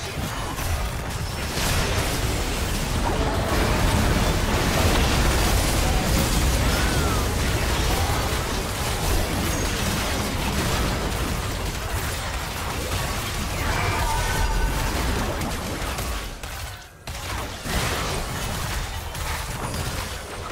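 Video game spell effects crash, zap and boom in a busy fight.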